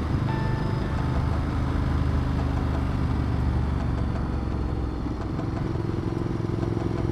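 A motorcycle engine rumbles steadily.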